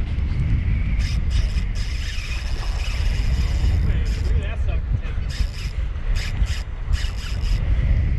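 Wind blusters loudly against the microphone outdoors.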